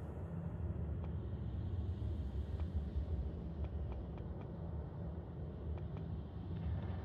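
Soft menu clicks tick one after another.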